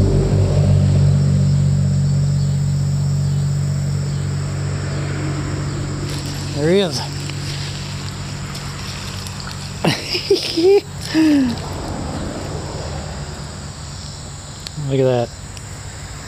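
A shallow stream ripples and flows steadily.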